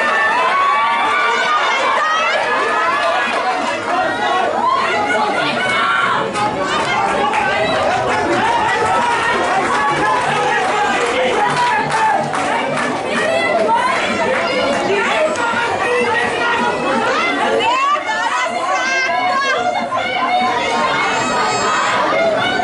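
Players shout to each other on the field.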